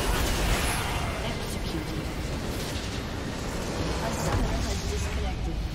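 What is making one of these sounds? Fantasy game combat effects clash and crackle.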